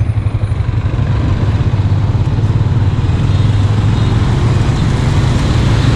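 Motorbike engines hum nearby on a road.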